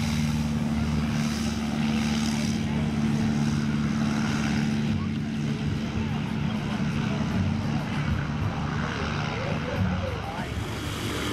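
A small propeller plane's engine roars steadily as it takes off.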